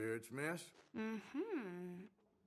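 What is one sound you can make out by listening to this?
A woman answers calmly nearby.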